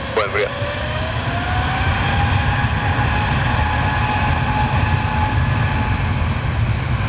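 A jet engine whines with a rising pitch that then holds steady.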